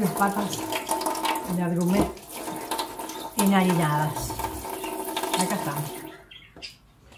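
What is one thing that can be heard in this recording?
Water runs from a tap and splashes.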